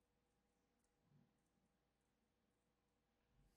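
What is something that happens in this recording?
A playing card is set down softly on a mat.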